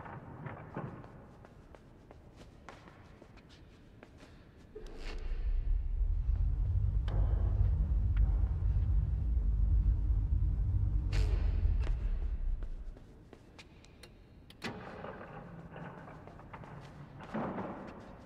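Light footsteps patter on a hard floor in a large, echoing hall.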